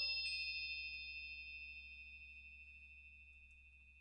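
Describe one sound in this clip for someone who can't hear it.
A struck metal bar rings out clearly and slowly fades.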